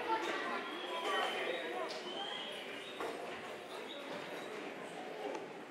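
A woman talks to the children.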